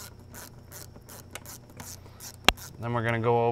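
A plastic connector clicks as a hand works at it.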